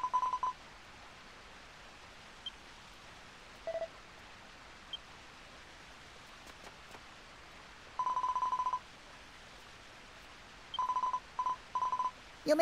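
Quick high electronic blips chirp in short bursts.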